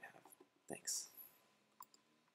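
A young man speaks briefly and quietly into a nearby computer microphone.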